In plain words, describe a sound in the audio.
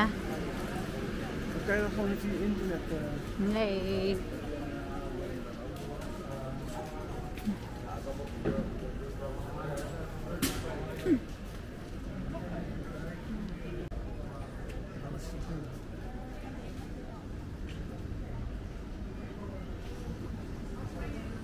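Voices of passers-by murmur nearby outdoors.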